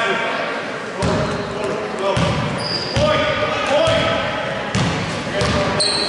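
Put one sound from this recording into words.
A basketball bounces on a wooden floor with heavy thumps.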